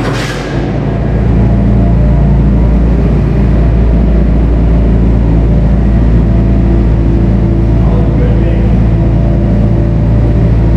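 A diesel engine rumbles steadily and loudly in a large echoing hall.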